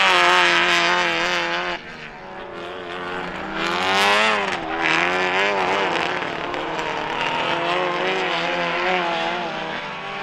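Racing car engines roar and rev as the cars slide through a bend.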